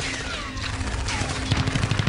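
A helicopter's rotor thumps rapidly overhead.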